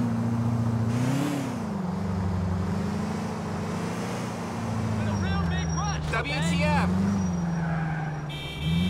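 A car engine hums steadily as the car drives.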